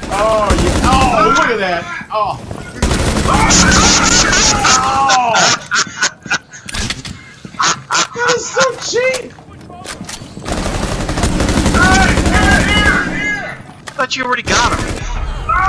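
Bursts of rapid gunfire ring out loudly.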